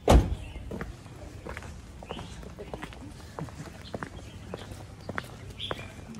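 Footsteps scuff on a paved street outdoors.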